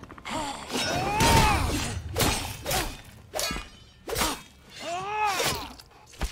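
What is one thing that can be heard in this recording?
A pickaxe strikes rock with sharp clanks.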